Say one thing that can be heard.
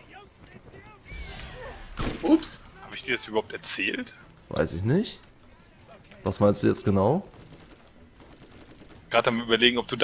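Gunshots fire in short bursts close by.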